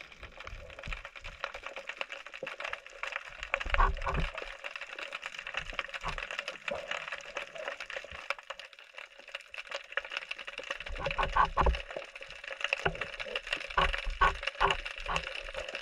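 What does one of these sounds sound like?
A diver's fins swish faintly through the water.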